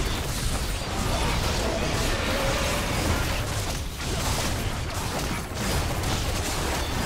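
Magic blasts and weapon strikes clash in a fight with a huge monster.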